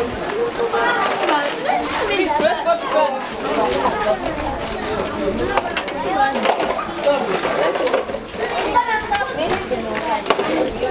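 Many young children chatter and call out outdoors.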